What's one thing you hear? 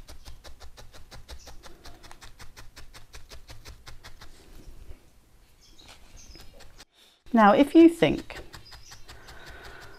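A felting needle pokes rapidly into wool with soft, quick taps.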